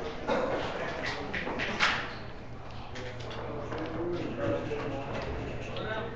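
Game pieces click against a board.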